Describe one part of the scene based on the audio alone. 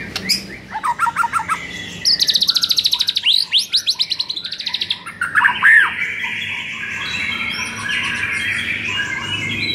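A caged songbird sings a loud, varied song of rapid trills and whistles.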